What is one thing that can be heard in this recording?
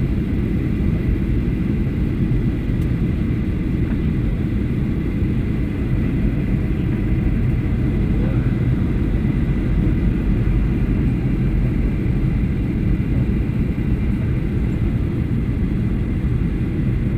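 A jet engine roars steadily and evenly, heard from inside a plane.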